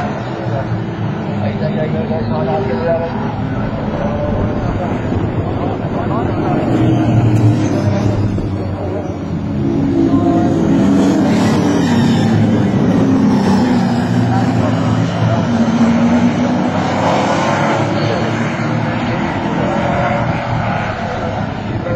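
Engines rise and fall in pitch as the cars shift gears and brake into corners.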